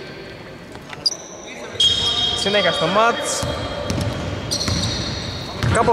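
A referee's whistle blows sharply in a large echoing hall.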